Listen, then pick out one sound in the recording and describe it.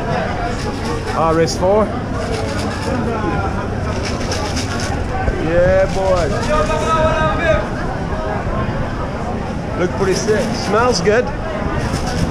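A man talks with animation close to the microphone.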